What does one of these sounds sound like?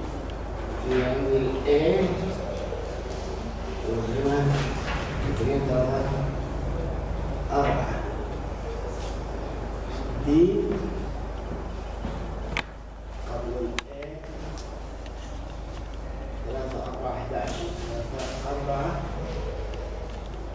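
A man talks steadily, heard from across an echoing room.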